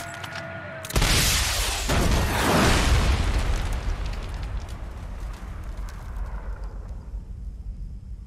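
A huge explosion booms and its rumble slowly fades away.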